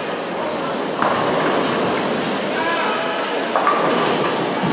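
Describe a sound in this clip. Bowling pins crash and clatter in the distance.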